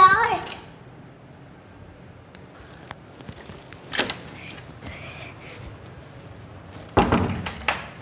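A door handle rattles and clicks.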